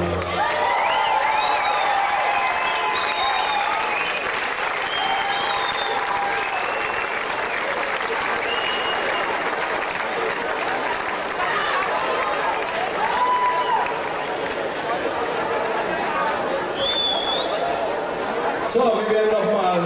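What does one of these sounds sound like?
A big band plays brass-heavy music outdoors.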